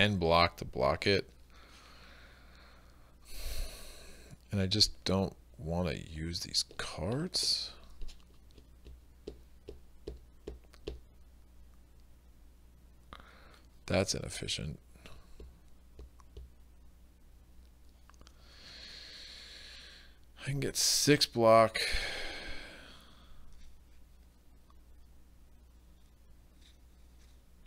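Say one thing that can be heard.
Playing cards slide and tap on a tabletop.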